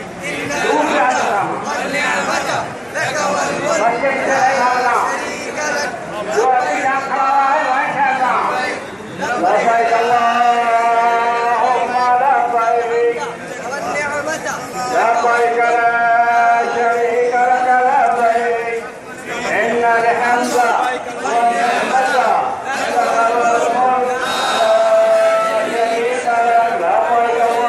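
A crowd of men chants together in unison, loud and close.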